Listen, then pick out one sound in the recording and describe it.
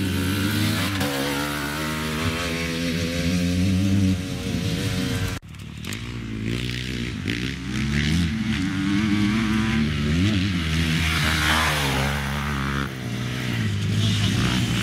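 A dirt bike engine roars close by, revving up and down.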